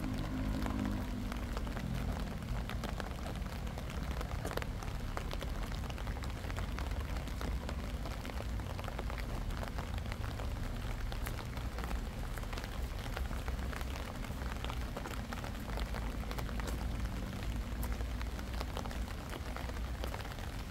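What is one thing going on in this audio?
Wind blows in low, steady gusts.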